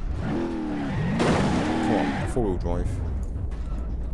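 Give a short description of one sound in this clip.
Tyres screech as a truck skids.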